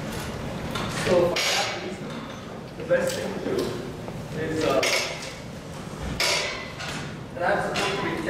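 A man speaks calmly in a large echoing hall.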